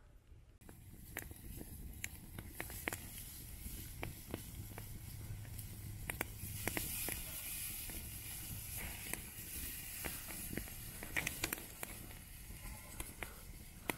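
Metal tongs clink against a grill grate.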